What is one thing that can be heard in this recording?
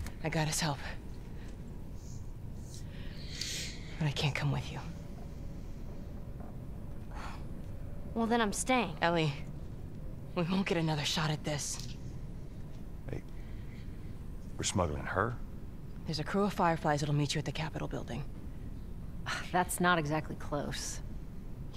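A woman speaks calmly and earnestly, close by.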